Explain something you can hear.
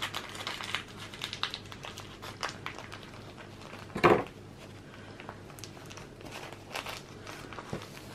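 Pastry rolls softly against a board.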